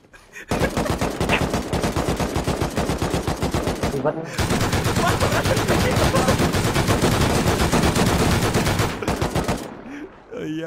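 A young man laughs loudly and heartily close to a microphone.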